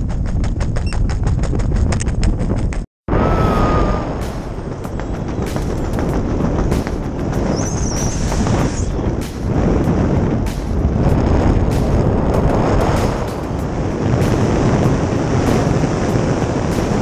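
Wind roars loudly past a microphone.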